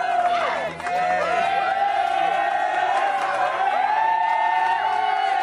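A crowd of young men cheers and shouts loudly outdoors.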